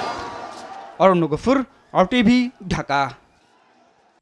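Young men chant and shout close by.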